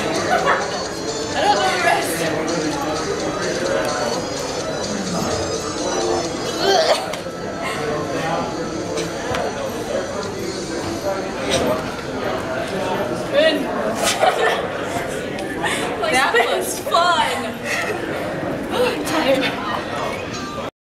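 Young people talk and laugh nearby in a room with a slight echo.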